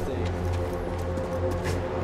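A laser sword hums.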